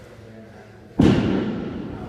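A heavy ball thuds onto a rubber floor.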